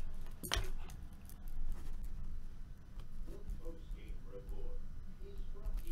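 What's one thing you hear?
Plastic card sleeves rustle and tap as a man handles them.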